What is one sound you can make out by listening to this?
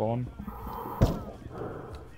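A single gunshot cracks, muffled underwater.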